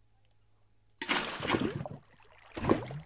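Lava gurgles as it is poured from a bucket.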